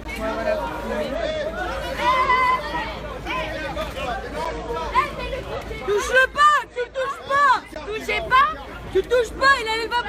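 A woman shouts close by.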